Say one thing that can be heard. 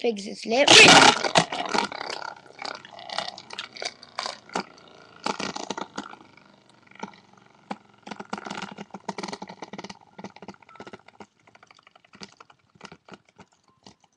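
A toy spinning top whirs.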